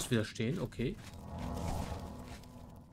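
A magical shimmer hums as a sword glows.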